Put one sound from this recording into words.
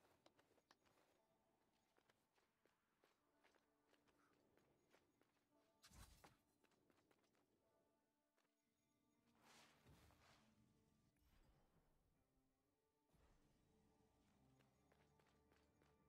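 Game music plays steadily.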